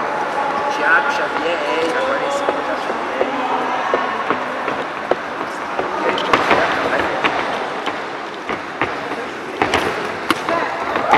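A crowd murmurs in an echoing hall.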